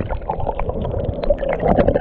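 Water splashes at the surface.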